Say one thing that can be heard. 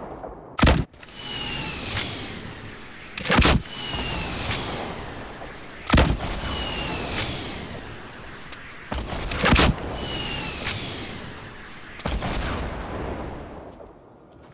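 Rockets explode with booming, echoing blasts.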